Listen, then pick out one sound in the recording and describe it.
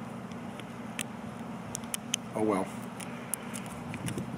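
A plastic bottle cap clicks as it is twisted.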